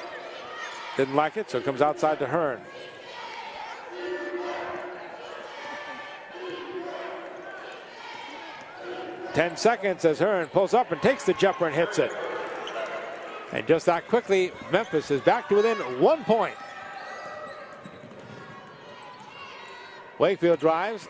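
Basketball shoes squeak sharply on a hardwood court.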